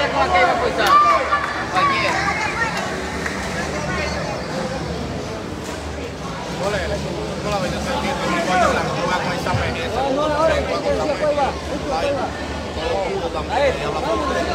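A crowd of men talks and shouts all around.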